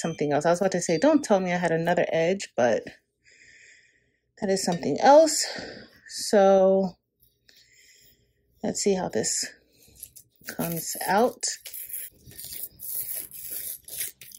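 Masking tape crackles as it is peeled and pressed onto a cup.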